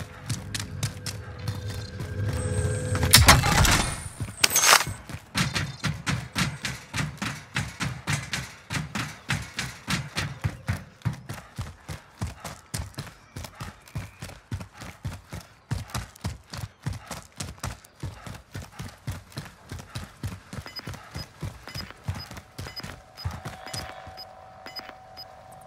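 Rapid footsteps run over hard ground.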